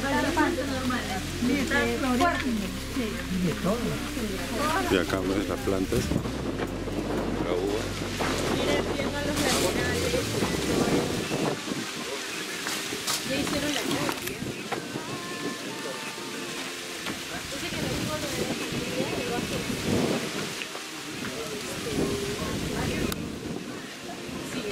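A group of men and women chat casually nearby outdoors.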